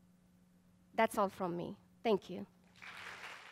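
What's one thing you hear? A woman speaks briefly and warmly into a microphone.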